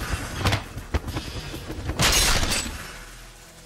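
A body crashes heavily onto wooden boards.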